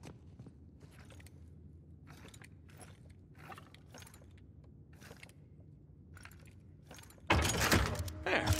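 Wooden tiles click and scrape as they are slid into place.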